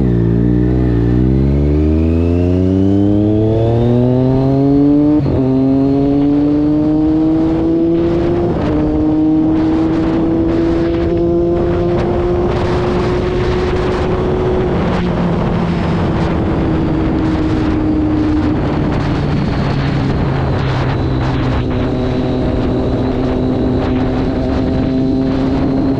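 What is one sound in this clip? A motorcycle engine revs hard and climbs through the gears, then settles to a steady drone.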